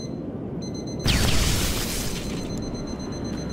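A small explosion bursts with a loud whoosh and fades.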